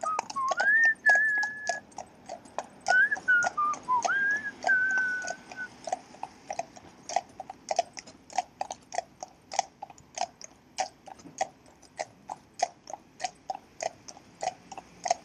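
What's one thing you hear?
Horses' hooves clop steadily on a paved road.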